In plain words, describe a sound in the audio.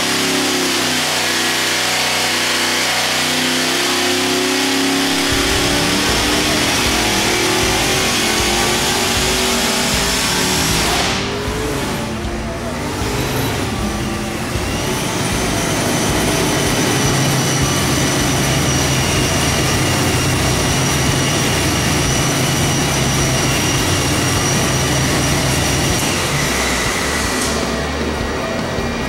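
A turbocharged engine roars loudly on a test stand, revving up and down.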